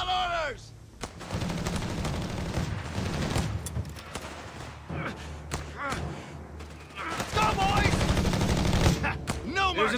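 Explosions rumble low and heavy.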